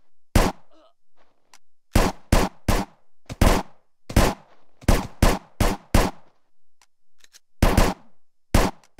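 Gunshots fire in sharp bursts, echoing briefly.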